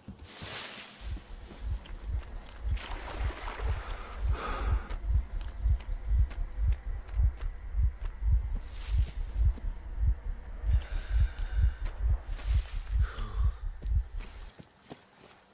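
Heavy footsteps thud steadily over rough, frozen ground.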